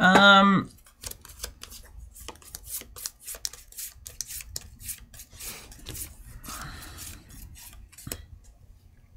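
Game cards and pieces click and shuffle on a table.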